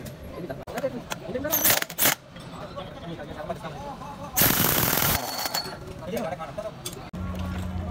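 A ratchet wrench clicks as it turns.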